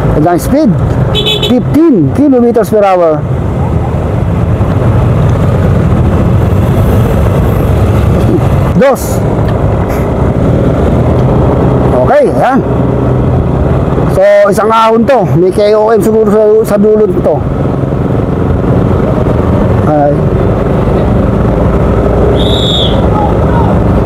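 Wind buffets loudly against a microphone on a moving motorcycle.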